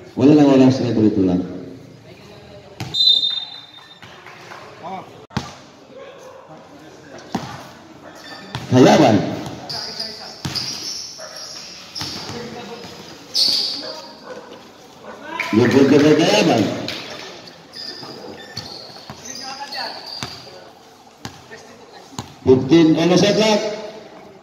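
A man shouts loudly nearby in a large echoing hall.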